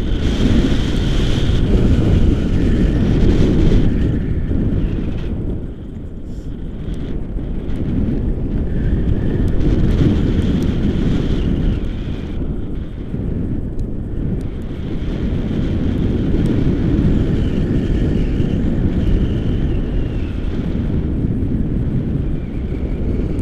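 Strong wind buffets and roars past close by.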